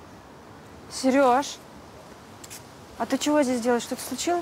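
A young woman calls out clearly nearby.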